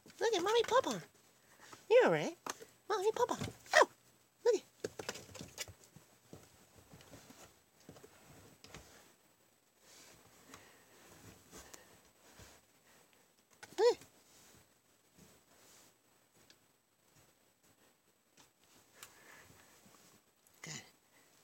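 A kitten mews in high, wavering cries.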